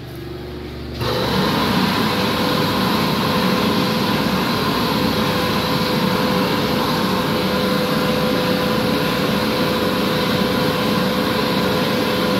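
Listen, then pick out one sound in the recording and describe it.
An electric hand dryer blows with a loud, steady roar.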